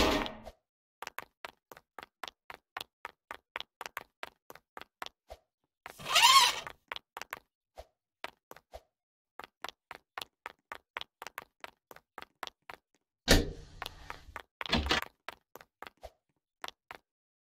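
Quick footsteps tap steadily on a hard floor.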